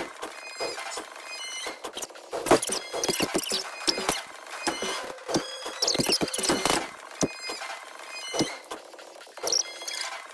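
Cartoon weapons strike with sharp smacks and thuds.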